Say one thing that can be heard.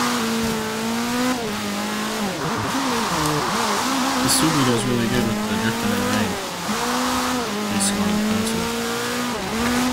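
A man talks into a microphone close up.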